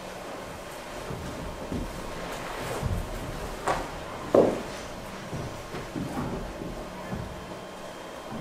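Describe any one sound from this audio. Footsteps and soft thuds sound on a hard floor.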